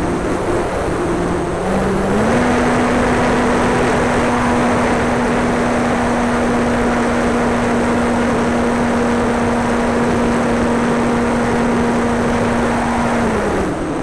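Wind rushes loudly past the plane.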